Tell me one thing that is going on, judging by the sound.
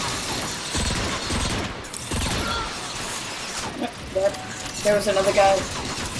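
Energy weapons fire and blast in rapid bursts.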